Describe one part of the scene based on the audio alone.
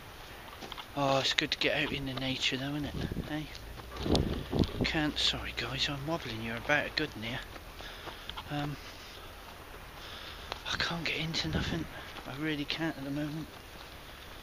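A middle-aged man talks calmly, close to the microphone, outdoors.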